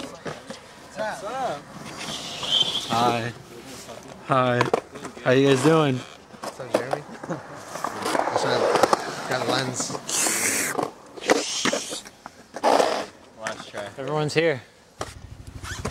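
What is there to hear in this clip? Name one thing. Young men talk and laugh close by, outdoors.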